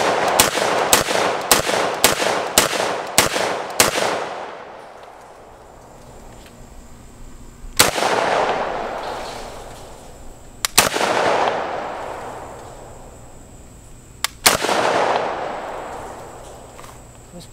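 An AK-pattern rifle in 7.62x39 fires sharp shots outdoors, each echoing across open ground.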